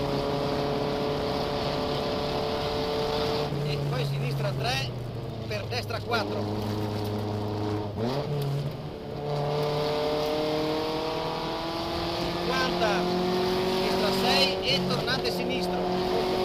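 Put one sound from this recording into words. A car engine revs hard and drops in pitch with each gear change.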